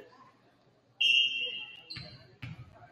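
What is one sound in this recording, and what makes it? A referee's whistle blows sharply in an echoing gym.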